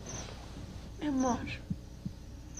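A young woman murmurs briefly and softly close by.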